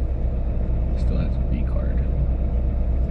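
A young man speaks briefly and casually nearby.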